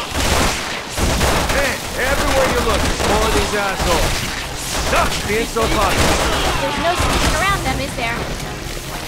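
A man speaks with a wry, sarcastic tone.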